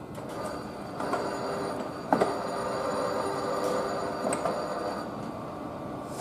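A train rolls slowly along nearby tracks with a low, steady whine.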